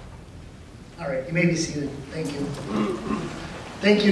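A man speaks calmly into a microphone over loudspeakers in a large echoing hall.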